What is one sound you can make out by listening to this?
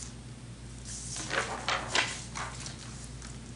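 Paper rustles as a hand moves it.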